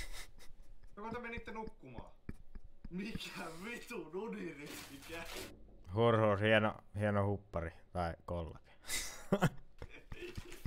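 A young man talks with animation, close up.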